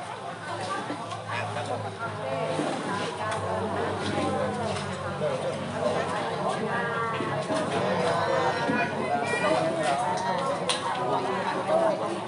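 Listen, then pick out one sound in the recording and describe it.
A group of men and women chant prayers together in unison, close by.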